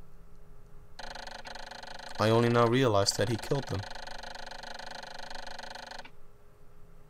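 A rapid electronic blipping sounds as a message types out.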